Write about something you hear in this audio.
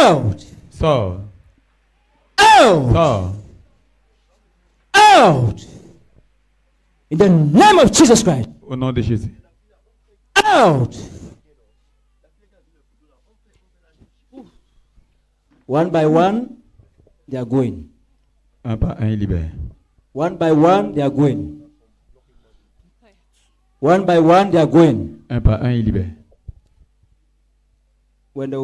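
A man prays loudly and forcefully into a microphone, in short bursts with pauses.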